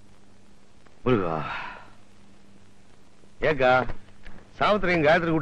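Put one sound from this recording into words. An elderly man speaks briefly.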